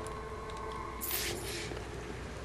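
A sharp whoosh sweeps past.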